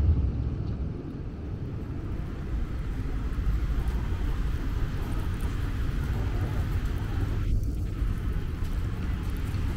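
Footsteps tap and splash on wet pavement.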